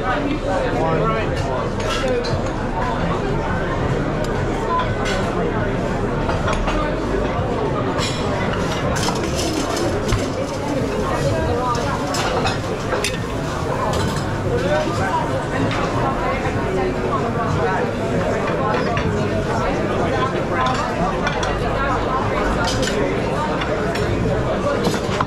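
Metal utensils clink and scrape against plates.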